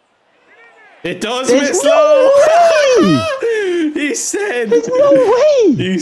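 A young man laughs and shouts excitedly into a microphone.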